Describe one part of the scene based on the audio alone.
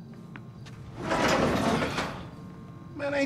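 A garage door rattles as it rolls open.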